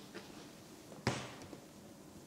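A door closes with a thud.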